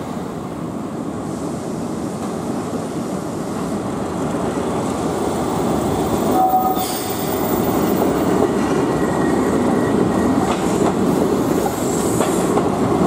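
A tram rumbles along rails, growing louder as it nears.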